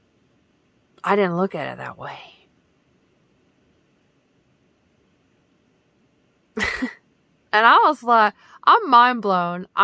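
A young woman speaks close up with animation.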